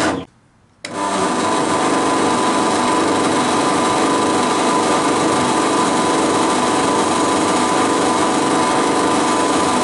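A drill bit grinds into metal.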